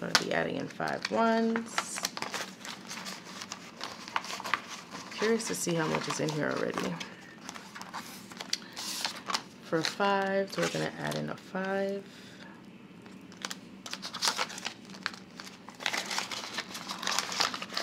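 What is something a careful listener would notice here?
Plastic pouches and sleeves crinkle and click as they are opened and handled.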